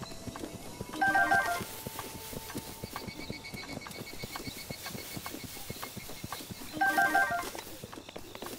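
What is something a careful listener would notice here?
Short chiming tones ring out as items are picked up.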